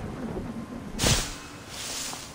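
A heavy thud lands on the ground.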